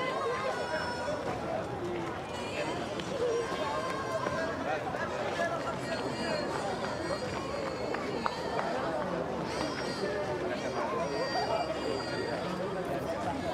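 A crowd of men, women and children chatters nearby outdoors.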